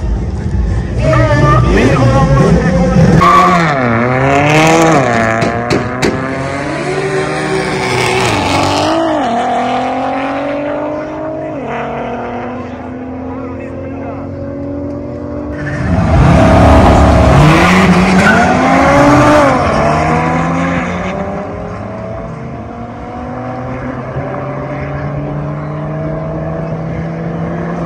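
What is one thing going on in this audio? A racing car engine roars and revs up through its gears as the car speeds past.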